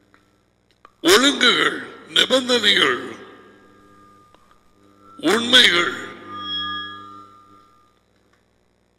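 A man speaks animatedly into a close headset microphone.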